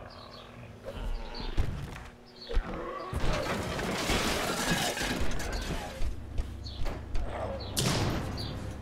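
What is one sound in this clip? A large creature leaps and lands with heavy thuds.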